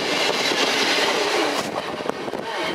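A train rushes past close by with a loud roar.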